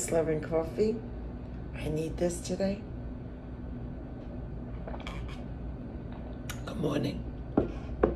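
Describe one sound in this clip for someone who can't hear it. An older woman speaks calmly close by.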